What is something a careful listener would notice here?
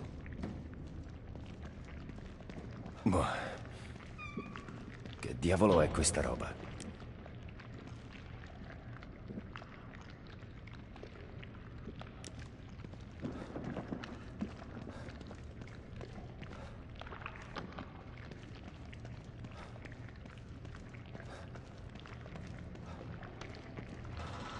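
Footsteps walk slowly on a hard floor.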